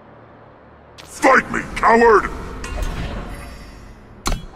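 A shimmering magical burst rings out.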